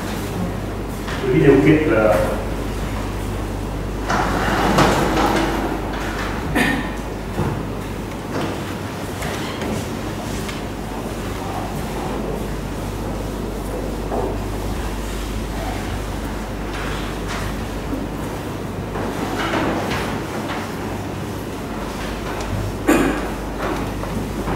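A man lectures in a calm voice, with pauses.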